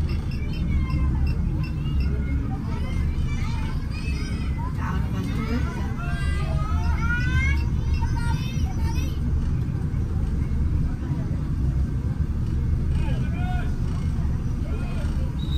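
A large engine rumbles steadily.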